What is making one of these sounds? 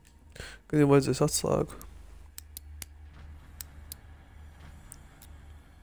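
Metal lock picks scrape and click inside a padlock.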